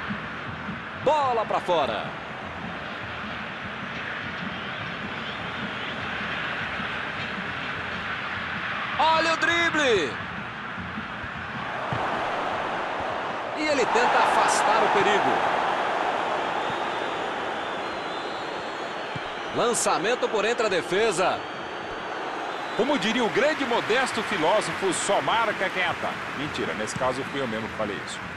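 A large crowd roars and cheers steadily in a stadium.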